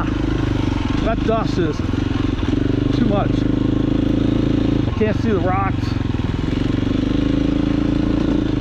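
A motorcycle engine drones loudly and steadily close by.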